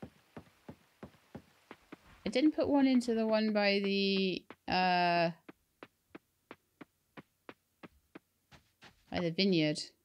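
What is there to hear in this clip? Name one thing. Quick footsteps patter along as a small figure runs.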